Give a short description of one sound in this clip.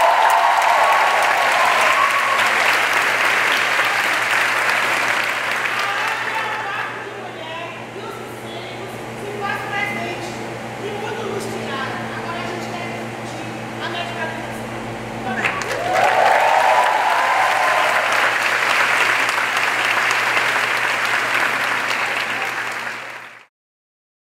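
A large crowd claps loudly in an echoing hall.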